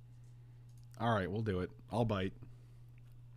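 A man speaks briefly into a microphone, close and calm.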